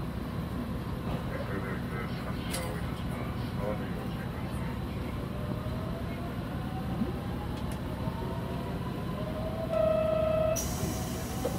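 An electric commuter train rumbles past close by.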